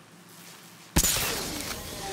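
An electric charge crackles and zaps loudly.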